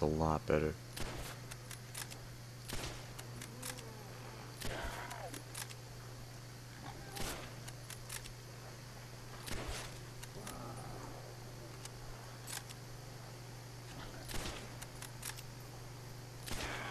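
A rifle fires in sharp single shots.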